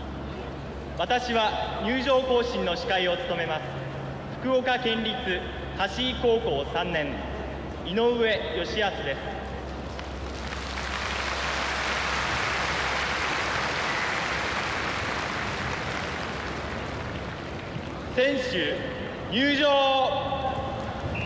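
A young man speaks loudly and formally into a microphone, echoing over a loudspeaker outdoors.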